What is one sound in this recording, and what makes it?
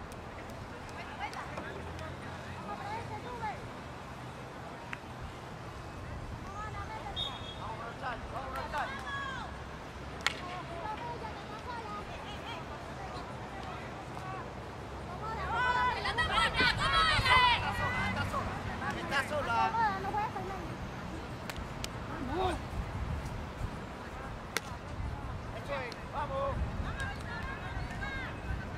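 A hockey stick strikes a ball with a sharp crack.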